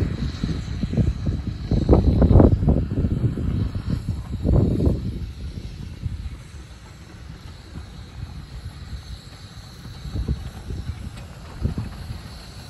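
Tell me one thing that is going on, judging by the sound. A steam locomotive chugs in the distance as it slowly approaches.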